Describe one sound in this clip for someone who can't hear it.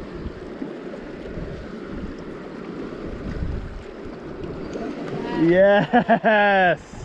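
Stream water gently laps against rocks.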